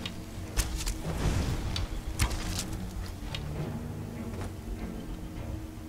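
An arrow whooshes from a bow with a crackling, magical hiss.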